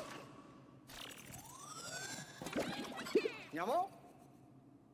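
A shimmering electronic beam hums and sweeps upward in pitch.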